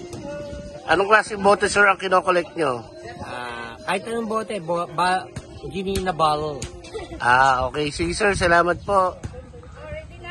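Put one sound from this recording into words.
A man talks calmly and cheerfully close by.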